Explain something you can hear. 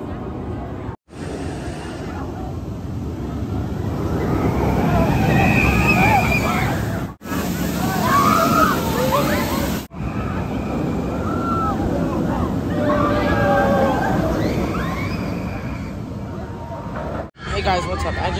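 A roller coaster train roars and rumbles along its track.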